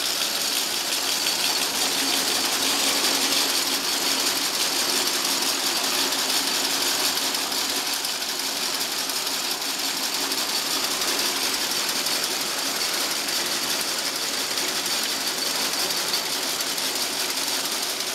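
Industrial machines run with a loud, steady whirring hum.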